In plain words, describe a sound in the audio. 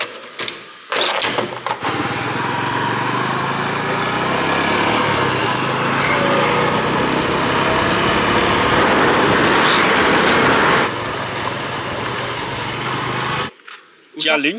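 A motorcycle engine drones steadily while riding along a road.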